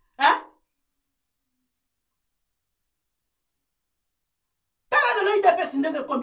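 A middle-aged woman speaks with animation, close to a microphone.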